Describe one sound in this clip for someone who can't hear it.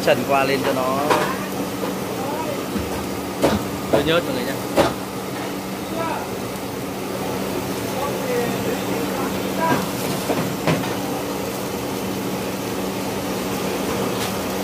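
Gas burners roar steadily.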